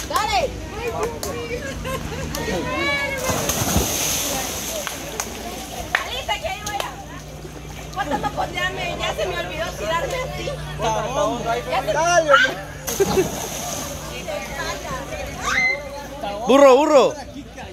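A crowd chatters and calls out nearby outdoors.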